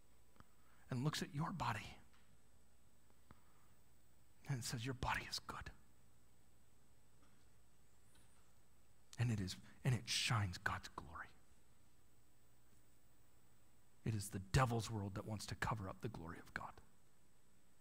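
A man speaks calmly in short phrases through a microphone in a large room.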